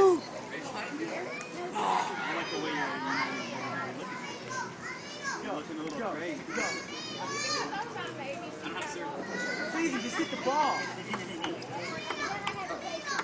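Young men talk and laugh with animation nearby.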